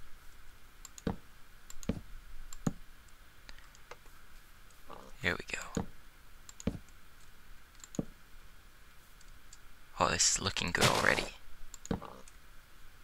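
Wooden blocks are placed with short, soft thuds, one at a time.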